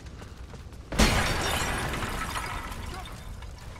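An explosion booms, followed by the roar of flames.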